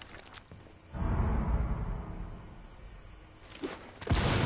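A wall bursts apart with a heavy boom and clattering debris.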